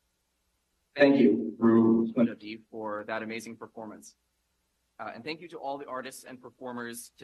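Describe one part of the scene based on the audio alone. A young man speaks calmly into a microphone over loudspeakers.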